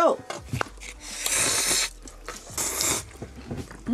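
A young woman slurps noodles.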